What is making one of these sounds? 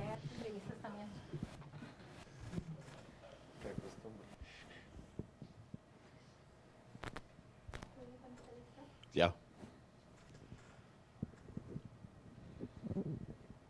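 A man speaks into a microphone in a relaxed, friendly way.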